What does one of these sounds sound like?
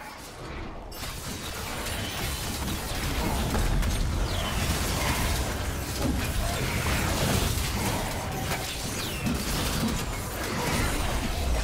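Magic spell effects whoosh, zap and crackle during a busy fight.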